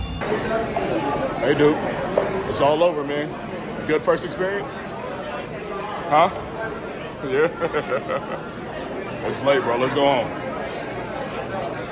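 Several adults and children talk and call out nearby in a busy crowd.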